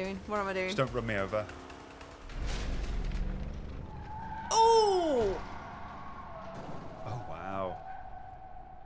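A car engine roars as a car speeds along.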